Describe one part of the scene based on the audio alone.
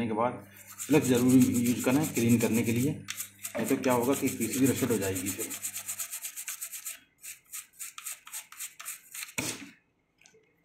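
A stiff brush scrubs quickly across a circuit board.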